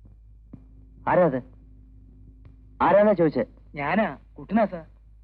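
A man speaks loudly and forcefully.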